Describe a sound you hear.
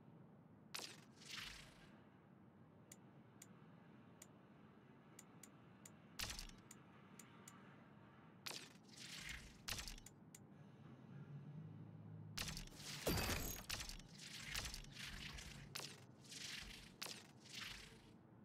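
Soft whooshes sweep past between the clicks.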